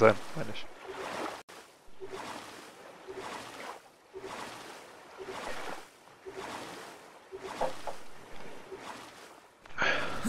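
A paddle splashes through water in steady strokes.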